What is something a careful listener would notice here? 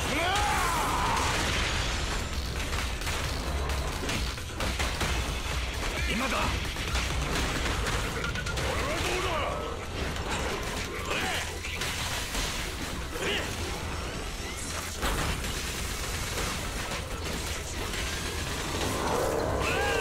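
Explosions boom and crackle in a fast video game fight.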